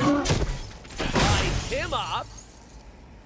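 An explosion booms with a crackling roar.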